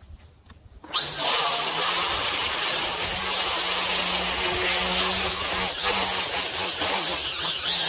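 A string trimmer whines loudly and steadily close by.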